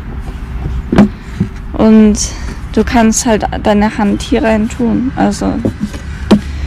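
A plastic case knocks and clicks as it is handled.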